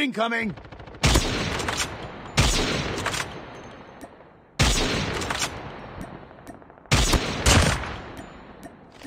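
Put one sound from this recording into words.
A rifle fires loud, booming shots that echo and fade.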